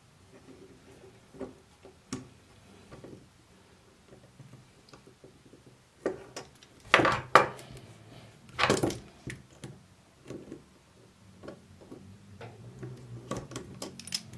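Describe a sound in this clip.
Plastic and metal parts click and scrape as a lens is handled closely.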